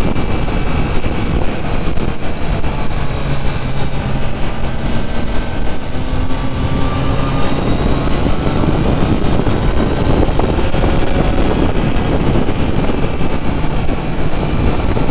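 Wind rushes loudly past the rider outdoors.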